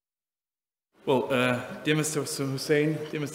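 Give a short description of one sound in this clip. A man speaks through a microphone and loudspeakers in a large hall.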